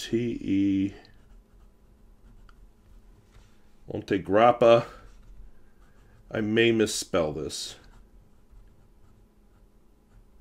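A fountain pen scratches softly on paper.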